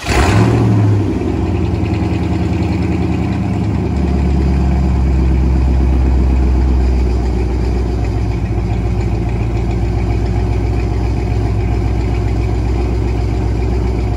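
A car engine idles with a deep, lumpy rumble.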